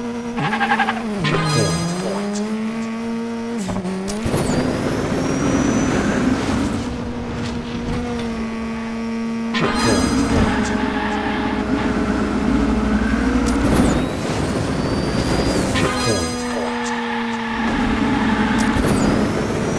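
A toy car's engine whines steadily, rising and falling in pitch as it speeds along a track.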